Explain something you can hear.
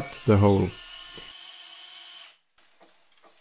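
A power drill whirs briefly and winds down.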